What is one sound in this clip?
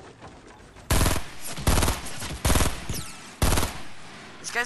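Gunshots ring out in quick, loud bursts.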